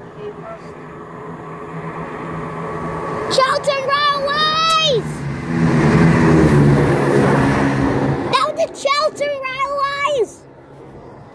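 A train rumbles past close by.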